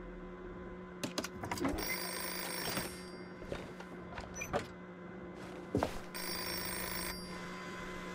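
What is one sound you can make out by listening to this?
A handheld device clicks and beeps.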